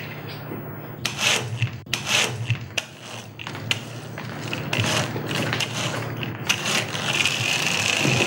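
A toy car's wheels roll across a tiled floor.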